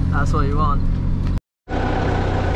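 A car engine hums while driving.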